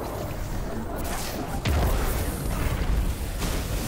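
A crackling energy blast roars and sizzles.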